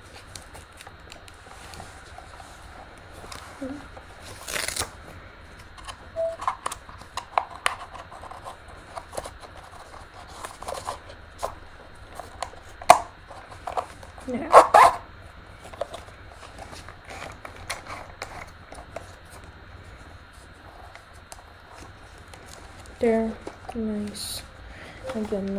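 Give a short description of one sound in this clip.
Straps rustle and scrape against plastic.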